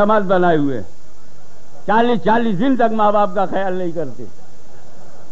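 An elderly man preaches loudly with passion through a microphone and loudspeakers.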